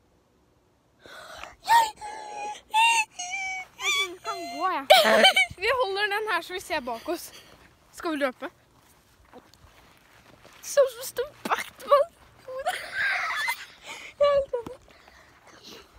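A young girl talks and squeals excitedly, close by.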